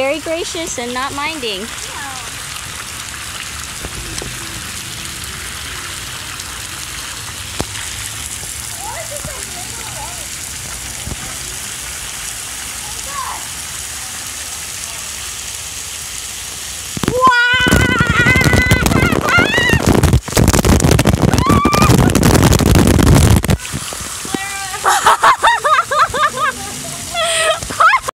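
A young girl squeals and chatters excitedly nearby.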